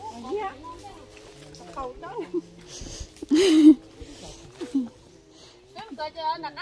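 Women talk and call out to each other nearby, outdoors.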